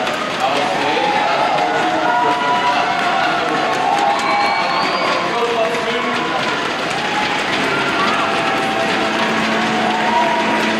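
A large crowd chatters and calls out in an echoing hall.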